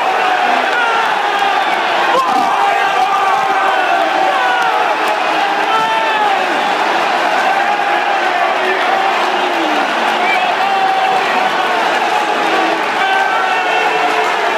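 A huge stadium crowd sings and chants loudly together, echoing around the stands.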